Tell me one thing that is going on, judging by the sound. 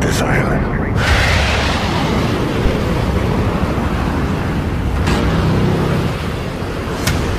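An aircraft engine roars overhead.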